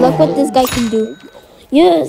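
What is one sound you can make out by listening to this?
A cartoon plant creature snaps its jaws with a chomping sound.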